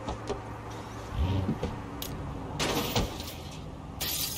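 A car engine revs and drives off.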